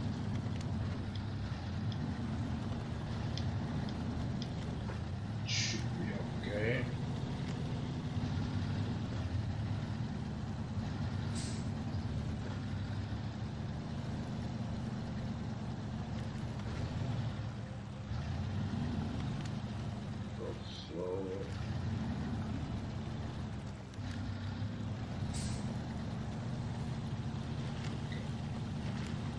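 A heavy truck engine rumbles steadily at low speed.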